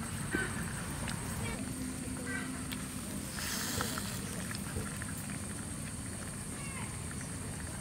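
Charcoal embers crackle softly.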